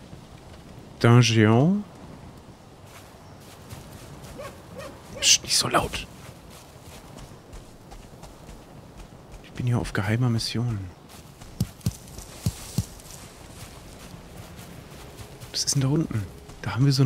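A man speaks into a close microphone in short bursts.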